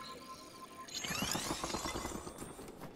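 An ice block shatters with a bright, glassy crackle.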